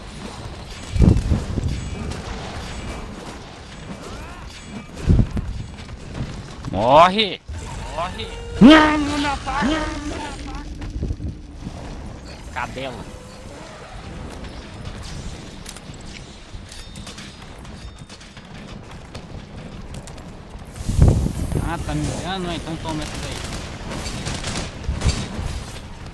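Heavy thuds of blows and impacts land in bursts.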